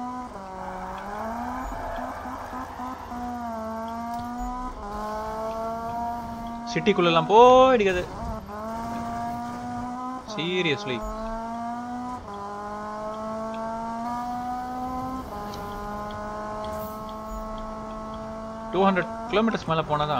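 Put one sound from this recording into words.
A car engine roars at high revs, rising in pitch and dropping with each gear change.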